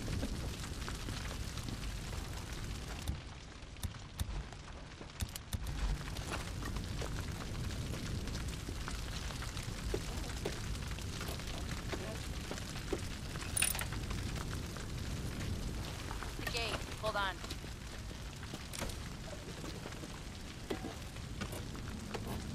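Footsteps crunch on dry, gravelly ground.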